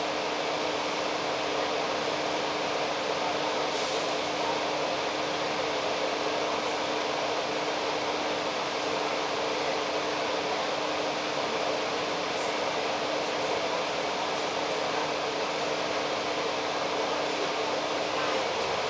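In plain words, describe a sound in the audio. Steady city traffic rumbles and hums nearby.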